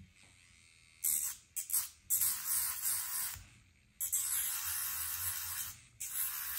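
A nail drill grinds noisily against a fingernail in short bursts.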